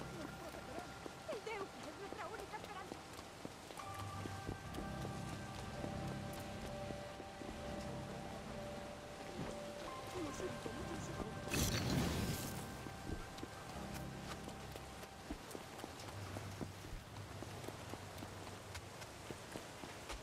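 Footsteps run quickly over wet pavement.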